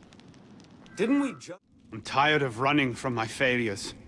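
A young man speaks in reply, close by.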